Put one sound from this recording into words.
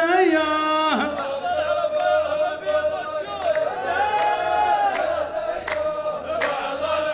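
A group of men chants together.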